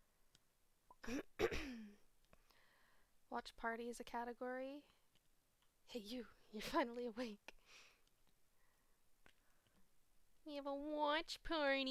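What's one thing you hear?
A young woman talks close to a microphone, with animation.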